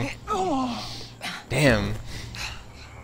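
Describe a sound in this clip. A man grunts and groans while struggling.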